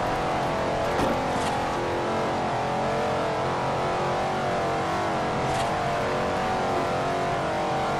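A powerful car engine roars steadily at high speed.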